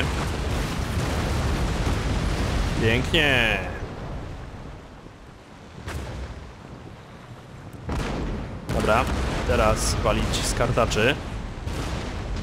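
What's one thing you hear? Waves wash and roll against wooden sailing ships at sea.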